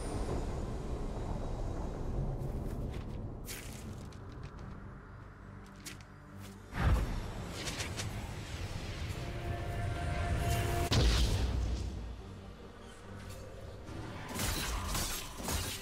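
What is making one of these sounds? Magic spell effects burst and whoosh.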